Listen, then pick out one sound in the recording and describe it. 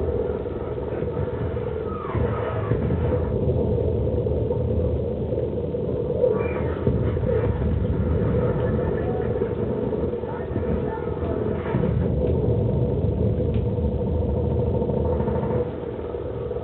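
Explosions boom and rumble in a video game.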